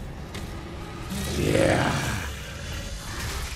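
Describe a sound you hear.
A monster growls loudly up close.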